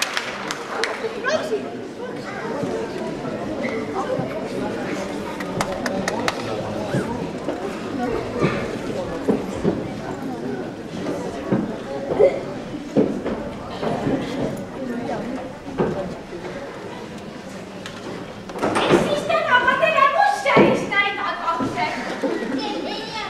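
Adult actors talk loudly and theatrically at a distance in an echoing hall.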